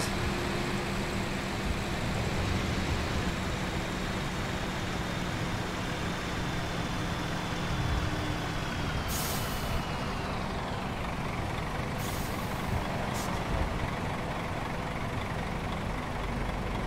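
A bus engine rumbles steadily and winds down as the bus slows.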